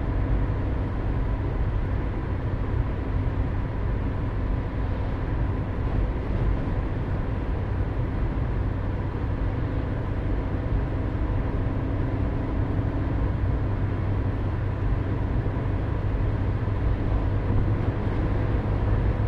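Rain patters on a car's windscreen.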